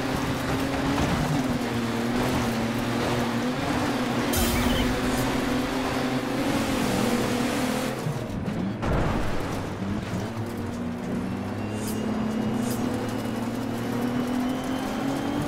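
Rain hisses on the track.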